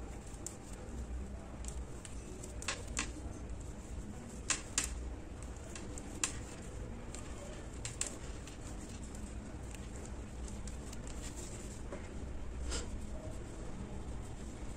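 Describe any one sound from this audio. Yarn rustles softly as it is pulled.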